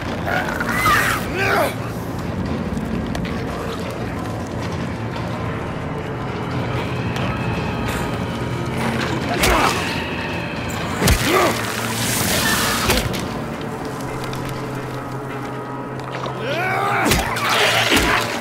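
A creature screeches and shrieks.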